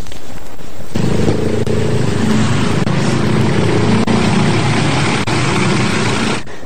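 A van engine rumbles close by.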